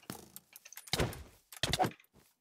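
A sword strikes with sharp thuds.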